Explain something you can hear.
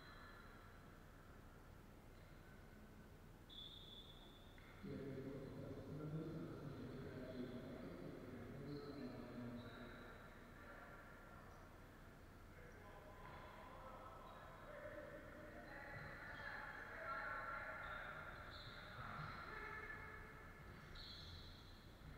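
Players' voices call out and echo in a large hall.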